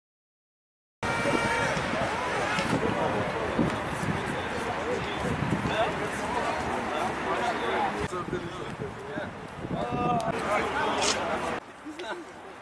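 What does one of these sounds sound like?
A man talks with animation to a group outdoors.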